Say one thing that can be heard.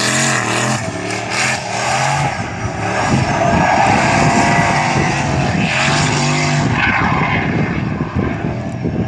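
Tyres screech loudly as a car drifts.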